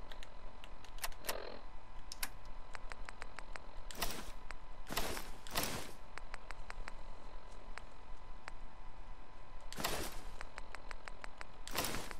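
Short electronic clicks tick rapidly, one after another.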